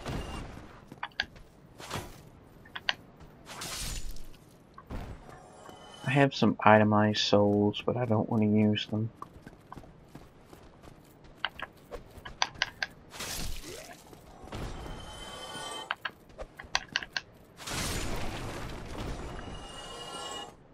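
Swords clang and strike in quick bursts.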